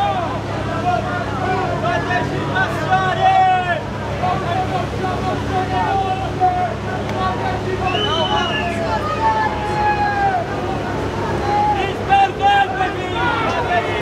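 A low engine hums steadily nearby.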